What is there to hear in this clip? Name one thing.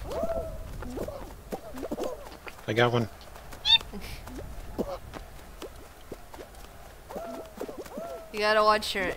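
Cartoonish game sound effects bounce and chirp.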